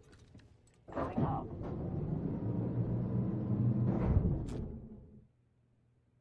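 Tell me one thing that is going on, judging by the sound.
Elevator doors slide and rumble.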